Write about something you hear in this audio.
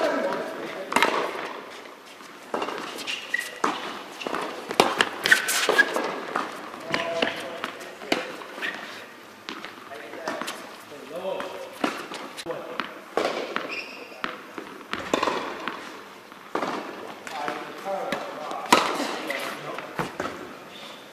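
Tennis balls are struck with rackets, echoing sharply through a large hall.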